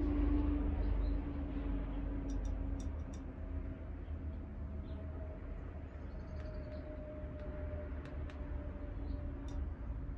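A small glass clinks softly against a table.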